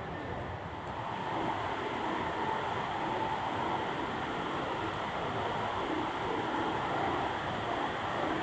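A fountain splashes steadily.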